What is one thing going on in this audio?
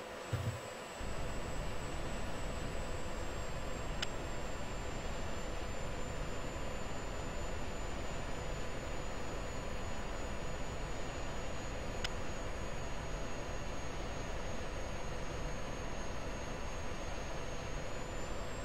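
A jet engine roars steadily, heard from inside the cockpit.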